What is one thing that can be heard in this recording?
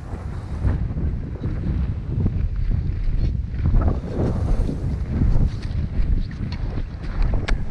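Boots crunch on packed snow.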